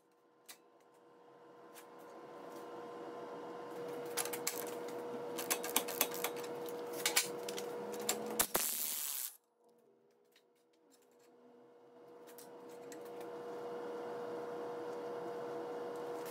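Metal parts clink and scrape as they are handled.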